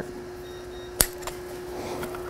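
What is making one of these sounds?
A wooden mallet taps on metal.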